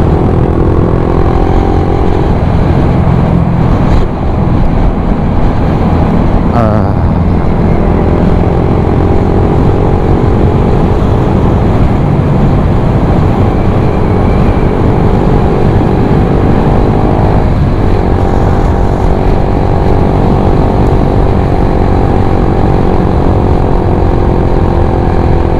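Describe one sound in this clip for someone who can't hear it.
A scooter engine hums steadily at speed.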